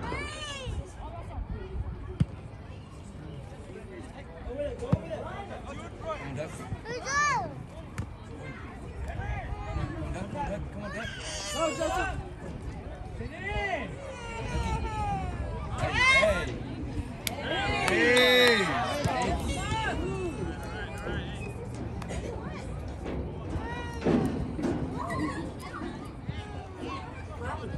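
Young players shout and call out across an open outdoor field.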